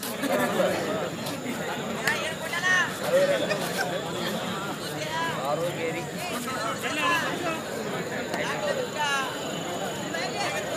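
Men shout excitedly nearby.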